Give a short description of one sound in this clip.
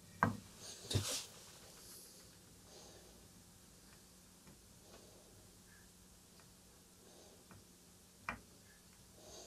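Small clicks and taps sound as a swab knocks against components.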